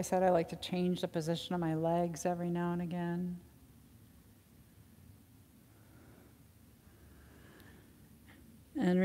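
A woman speaks calmly and clearly, close to a microphone.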